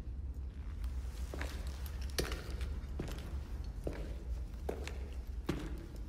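Footsteps tread slowly on a stone floor in a large echoing hall.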